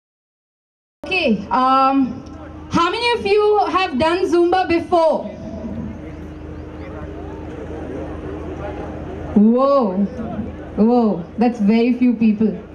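A young woman speaks with animation through a microphone and loudspeaker.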